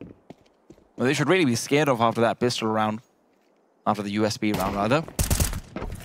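A young man speaks quickly and with animation into a headset microphone.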